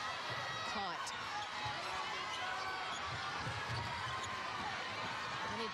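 A crowd murmurs and cheers throughout a large echoing arena.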